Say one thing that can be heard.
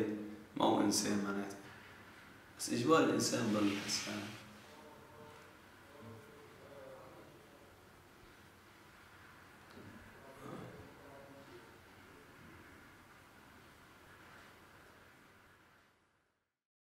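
A man speaks quietly and calmly nearby.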